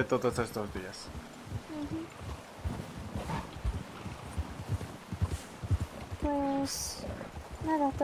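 Horse hooves thud steadily on snow.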